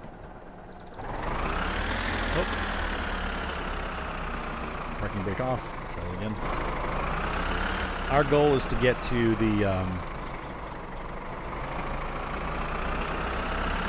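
A tractor engine starts and rumbles steadily, its pitch rising and falling.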